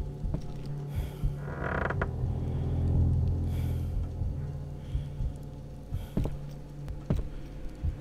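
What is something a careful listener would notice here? Heavy footsteps thud across a wooden floor.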